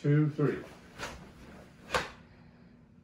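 A uniform snaps sharply with quick strikes.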